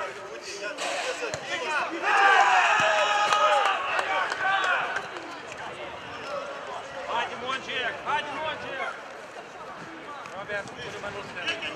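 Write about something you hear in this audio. Young men shout and call out to each other across an open outdoor pitch.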